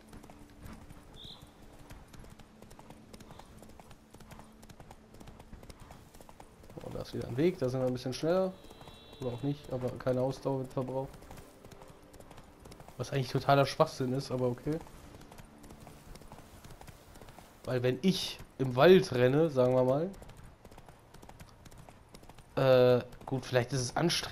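A horse gallops with rapid hoofbeats on a dirt path.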